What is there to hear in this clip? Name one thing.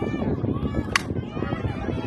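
A metal bat cracks against a softball.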